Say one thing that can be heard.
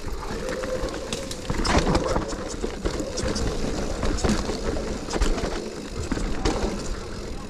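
A bicycle's chain and frame rattle and clatter over bumps.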